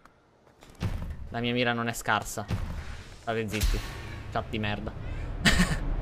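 A young man talks into a microphone with animation, close by.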